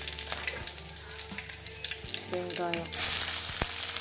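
Chopped onions drop into hot oil with a loud sizzle.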